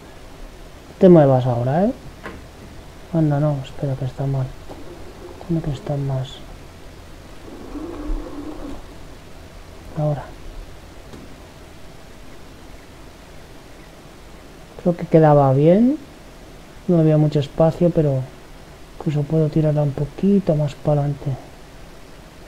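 A man talks into a close microphone with animation, in short bursts.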